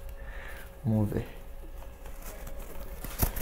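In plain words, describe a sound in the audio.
Paper rustles and crinkles as it is unwrapped.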